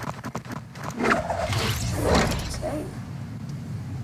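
A glider snaps open with a short whoosh.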